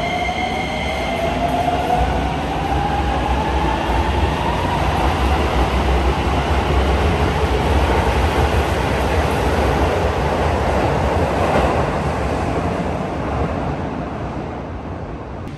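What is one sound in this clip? A train pulls away with a loud rumble and a rising electric whine, then fades into the distance.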